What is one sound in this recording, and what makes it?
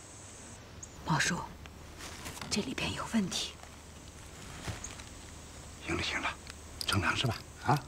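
A woman speaks with concern, close by.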